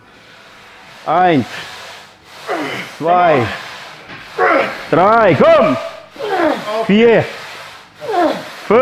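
A young man groans and grunts loudly with strain.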